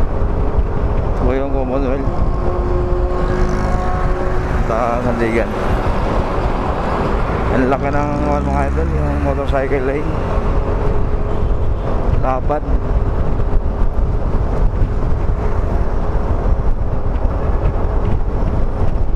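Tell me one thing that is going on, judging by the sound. Wind rumbles steadily against a motorcycle rider on the move.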